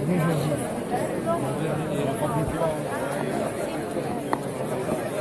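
A large crowd of men and women talks and chatters close by, outdoors.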